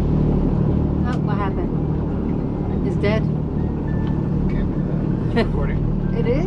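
An elderly woman speaks and laughs nearby.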